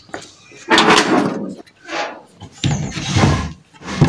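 A wooden drawer slides open.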